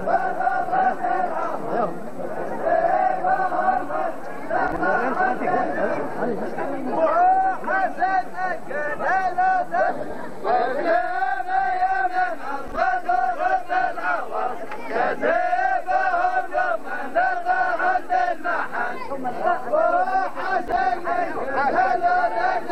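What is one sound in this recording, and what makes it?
A group of men chant together loudly outdoors.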